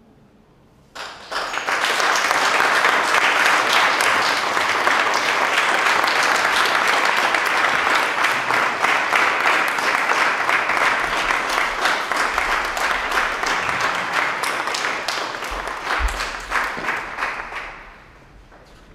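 An audience applauds loudly and steadily.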